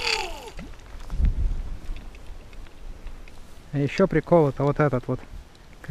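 A fishing reel clicks as it is cranked.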